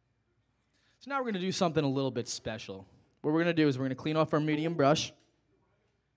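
A young man speaks loudly and with animation into a microphone.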